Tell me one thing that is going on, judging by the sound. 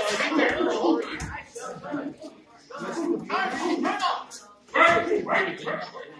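Punches and kicks thud against bodies.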